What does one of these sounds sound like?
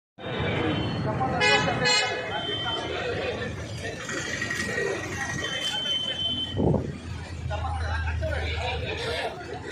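A crowd of young men chants slogans loudly outdoors.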